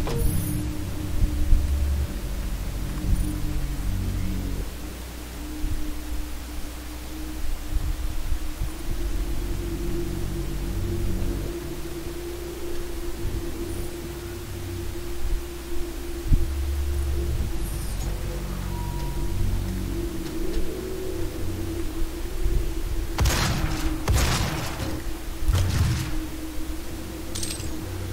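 A middle-aged man talks casually into a close microphone.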